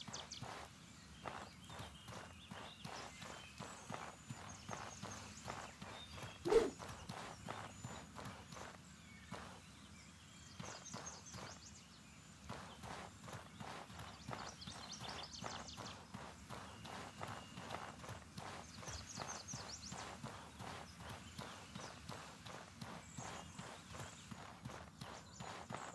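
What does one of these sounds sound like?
Quick footsteps run through grass.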